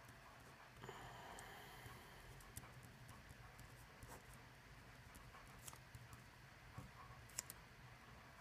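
A pen scratches and taps on paper.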